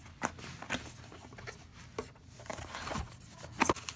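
Cardboard scrapes and rustles as a box is handled.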